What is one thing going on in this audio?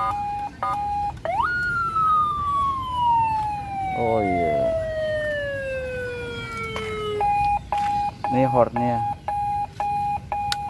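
A motorcycle's alarm beeps in short, repeated tones.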